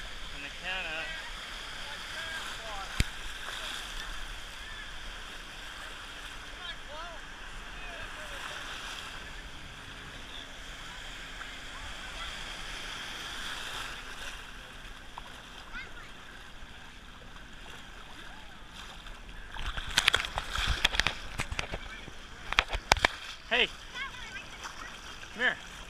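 Shallow waves wash and break steadily nearby.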